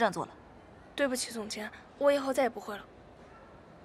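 Another young woman answers briefly.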